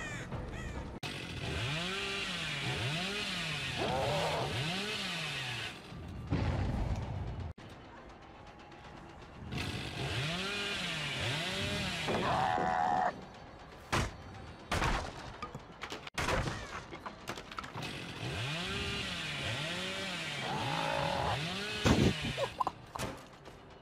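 A chainsaw revs up and down in loud bursts.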